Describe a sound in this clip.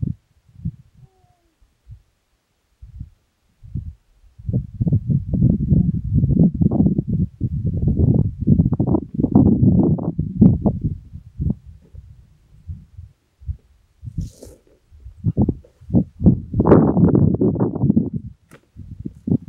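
Wind gusts buffet the microphone outdoors, in low rumbling bursts.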